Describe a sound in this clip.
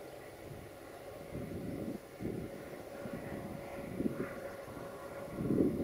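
A diesel locomotive rumbles in the distance.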